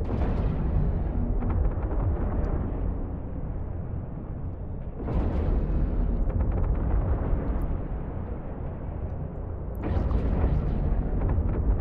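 A deep engine rumble drones steadily.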